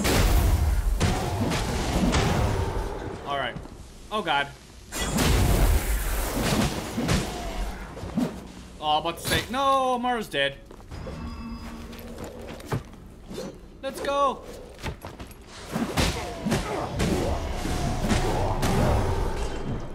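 Blades clash and strike in a fast fight.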